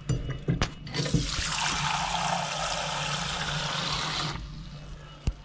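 Water runs from a tap into a bowl.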